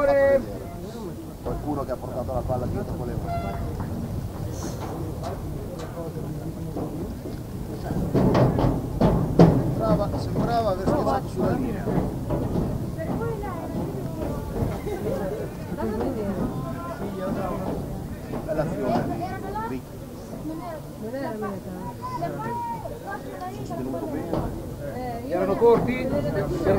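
Spectators murmur and call out from an open-air stand.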